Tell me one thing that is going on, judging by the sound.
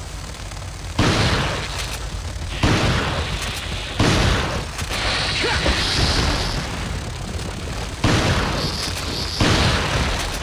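A shotgun fires several loud blasts that echo off rock walls.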